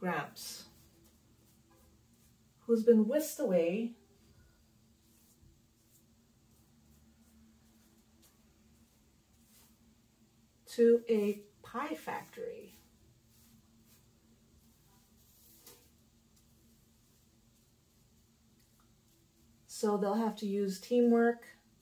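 A woman speaks calmly and close by, in short phrases with long pauses.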